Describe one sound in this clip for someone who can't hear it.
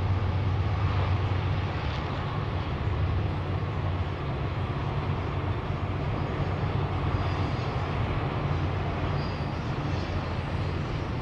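A freight train rumbles steadily past in the distance.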